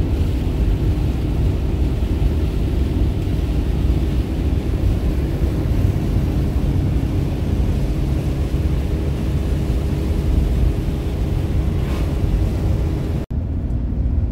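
Rain patters on a windshield.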